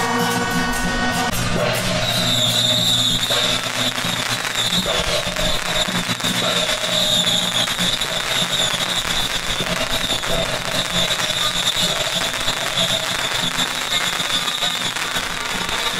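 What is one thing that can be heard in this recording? Firecrackers crackle and pop rapidly nearby, outdoors.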